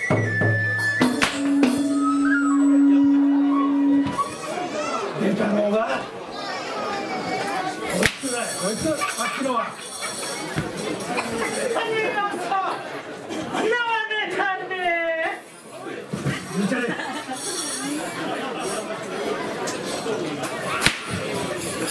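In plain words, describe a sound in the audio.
A drum is struck with sharp, single beats.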